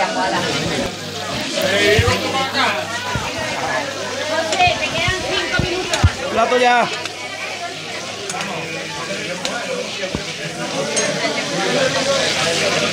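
Food sizzles softly in a pan.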